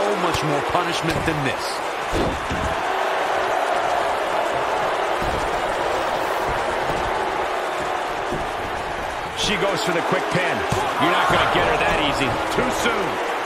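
A large crowd cheers and roars steadily in an echoing arena.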